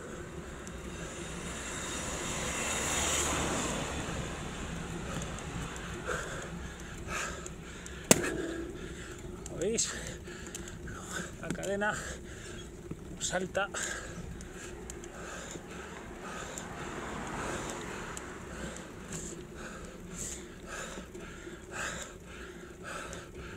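Wind rushes steadily past a cyclist riding downhill.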